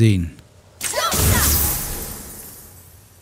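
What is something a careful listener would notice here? A magical beam hums and crackles.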